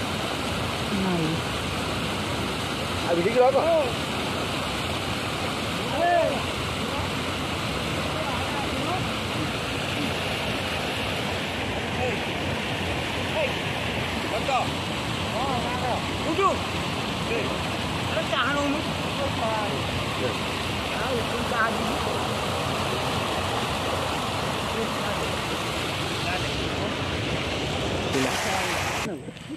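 Water rushes and churns steadily close by.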